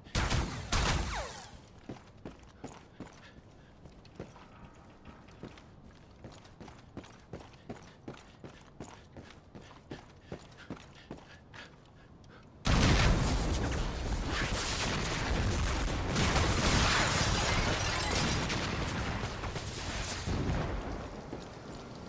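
An electric gun fires with a loud crackling zap.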